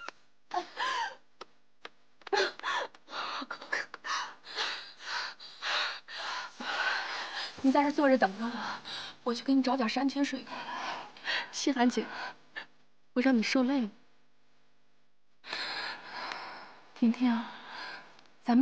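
A young woman speaks softly and with concern, close by.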